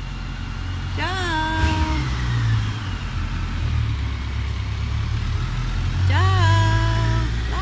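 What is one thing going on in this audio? A motorcycle engine revs up as the motorcycle pulls away.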